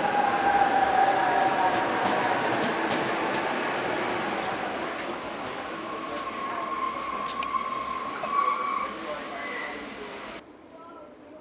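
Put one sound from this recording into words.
A train rumbles past along the tracks and fades into the distance.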